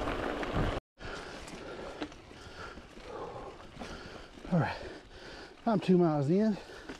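Bicycle tyres roll softly over a dirt trail with dry leaves.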